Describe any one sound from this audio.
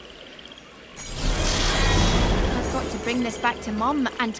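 A magical blast bursts with a loud, rushing whoosh.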